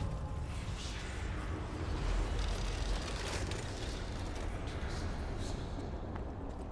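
A magical shimmer rings out and fades.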